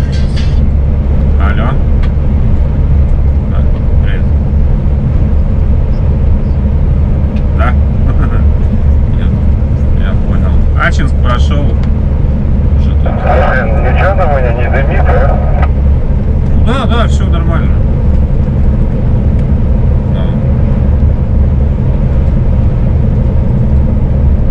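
A heavy vehicle's engine drones steadily at speed.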